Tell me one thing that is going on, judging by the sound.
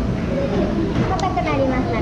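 A young woman speaks calmly nearby through a face mask.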